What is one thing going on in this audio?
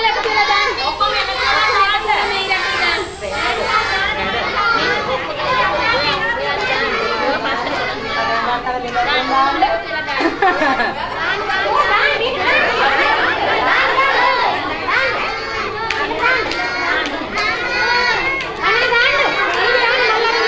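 Young children chatter and call out in an echoing room.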